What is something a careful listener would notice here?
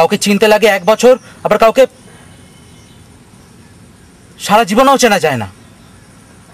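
A man speaks calmly and closely, in short bursts.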